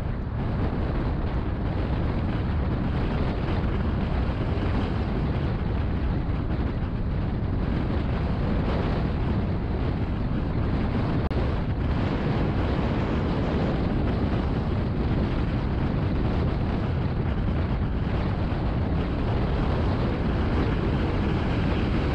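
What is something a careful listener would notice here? Tyres roll on the road surface with a low, steady rumble.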